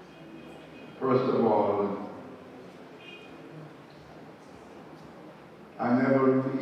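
An elderly man speaks slowly and deliberately into a microphone, heard through a loudspeaker in a large room.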